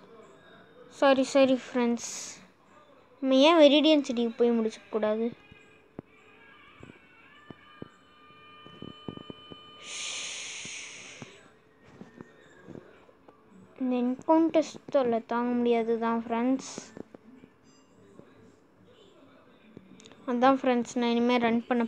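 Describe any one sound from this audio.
A boy talks with animation, close to a phone's microphone.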